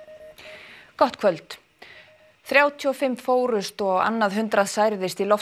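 A woman speaks clearly and calmly into a microphone.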